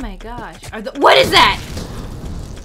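A young woman screams in shock.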